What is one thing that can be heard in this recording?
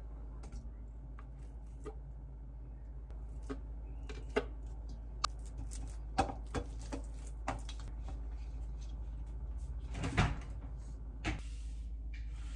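A spatula scrapes and taps against a metal bowl.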